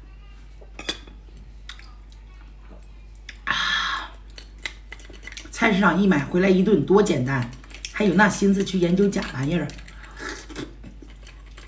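A spoon scrapes against meat and bone.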